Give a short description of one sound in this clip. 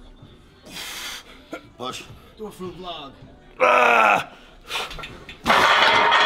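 A man grunts and strains with effort.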